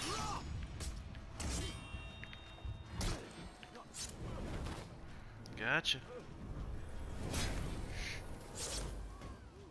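Swords clash and clang in a fight.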